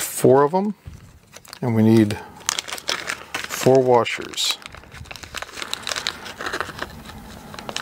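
A plastic bag of small metal parts crinkles and rattles in someone's hands.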